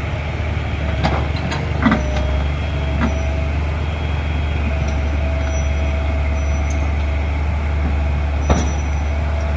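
Metal tracks and bucket clank and scrape.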